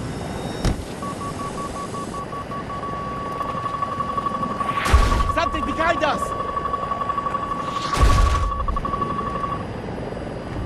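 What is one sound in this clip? A warning tone beeps rapidly and steadily.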